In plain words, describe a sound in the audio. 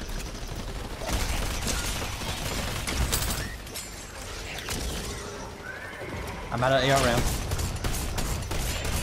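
Gunshots and blasts crackle in quick bursts.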